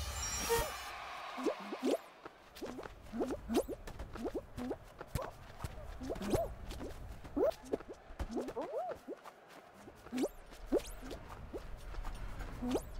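Small cartoon figures make bouncy, squeaky sounds as they run and jump.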